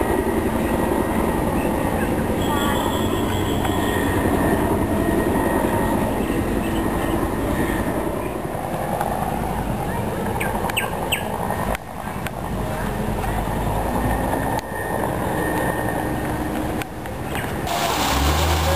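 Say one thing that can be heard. A swollen river rushes and roars steadily.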